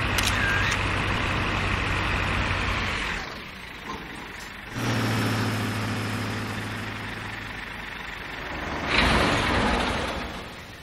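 Tyres roll and hiss on a road.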